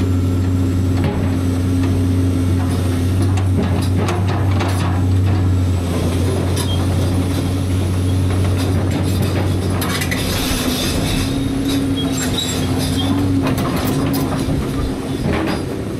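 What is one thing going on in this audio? An excavator's diesel engine rumbles and whines as its arm swings.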